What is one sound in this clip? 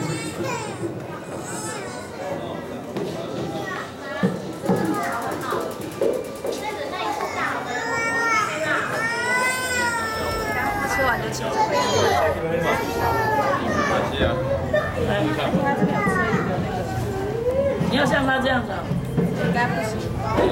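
Several adults talk and chatter nearby.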